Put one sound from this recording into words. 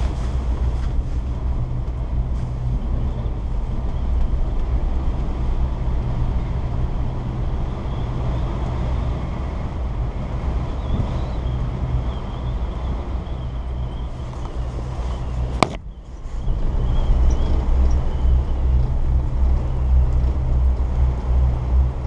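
Wind-driven snow patters against a plastic hood.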